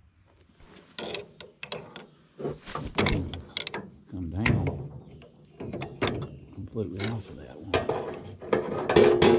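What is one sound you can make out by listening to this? A metal wrench clinks against machine parts.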